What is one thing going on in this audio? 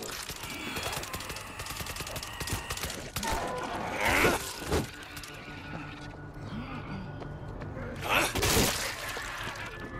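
Footsteps run on hard pavement.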